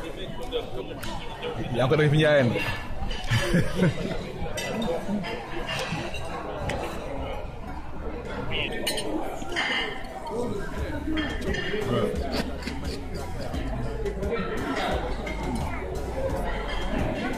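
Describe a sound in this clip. Diners chatter in the background of a busy room.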